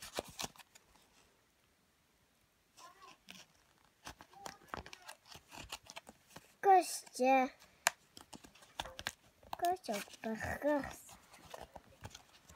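Plastic packaging crinkles and clicks in someone's hands.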